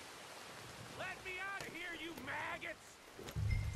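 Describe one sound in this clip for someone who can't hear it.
A man shouts angrily.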